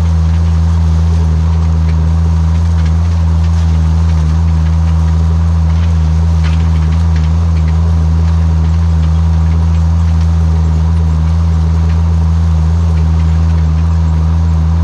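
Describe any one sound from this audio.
A seed drill rattles and clatters over the soil.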